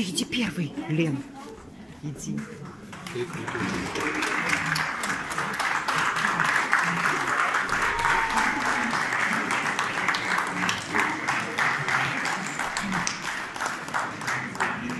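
A man plays a lively tune on an accordion close by.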